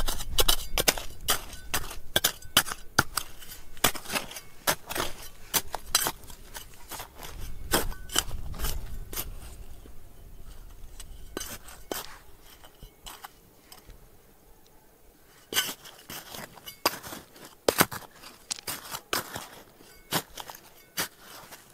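Loose dirt and pebbles spill and patter onto the ground.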